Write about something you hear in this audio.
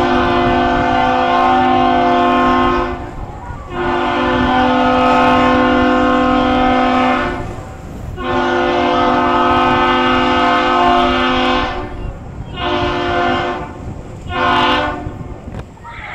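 A ship's horn sounds loud deep blasts, three long and two short.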